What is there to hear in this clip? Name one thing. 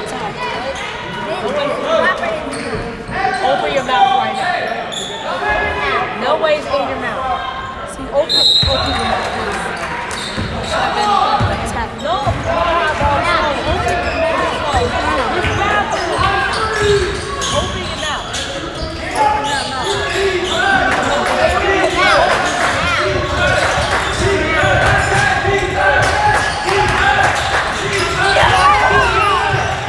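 A crowd of spectators chatters and calls out throughout a large echoing gym.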